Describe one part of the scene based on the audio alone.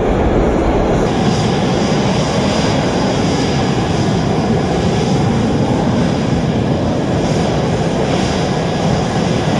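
Jet engines whine and rumble as fighter jets taxi past.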